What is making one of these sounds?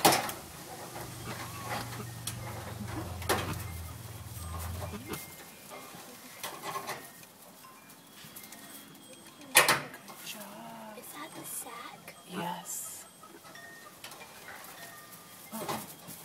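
A young goat noses through straw, making it rustle and crackle.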